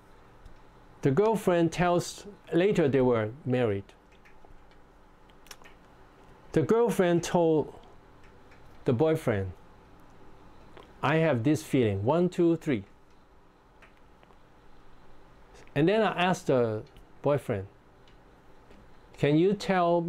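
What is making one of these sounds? An elderly man speaks calmly and closely, in short phrases with pauses.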